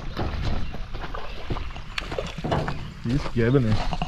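A man speaks nearby outdoors.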